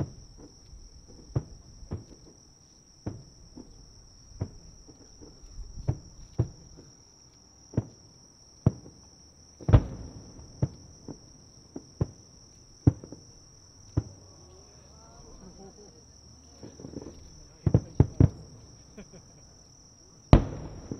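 Fireworks boom in the distance, echoing across open air.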